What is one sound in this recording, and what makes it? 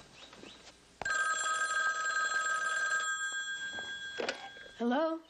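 A telephone rings steadily.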